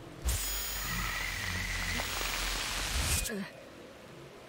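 Loud static hisses and crackles, then cuts off abruptly.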